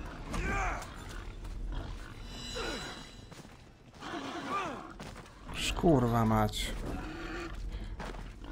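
Wild boars squeal and grunt.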